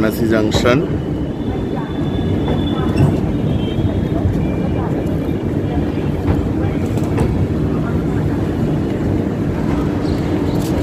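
Train wheels clatter over rail joints.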